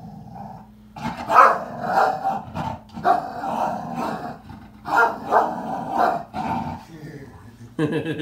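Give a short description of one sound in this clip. An elderly man talks with animation nearby.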